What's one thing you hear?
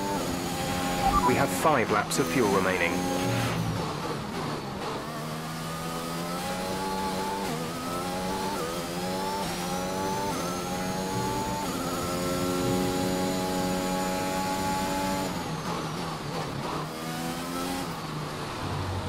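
A racing car engine growls and crackles while slowing into corners.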